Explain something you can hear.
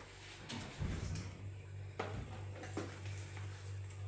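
A freezer door opens with a soft click.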